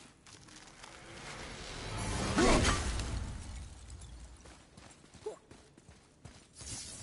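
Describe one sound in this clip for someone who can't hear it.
Sparkling magic shimmers and tinkles.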